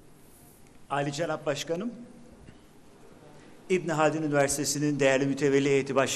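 An older man speaks through a microphone over loudspeakers in a large hall.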